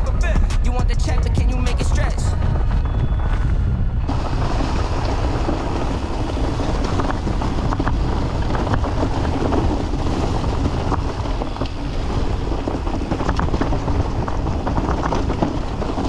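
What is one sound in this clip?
Bicycle tyres crunch over dry leaves and dirt.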